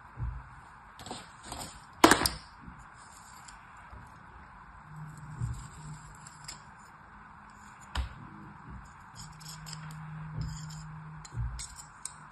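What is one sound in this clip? A plastic tool scrapes through soft sand.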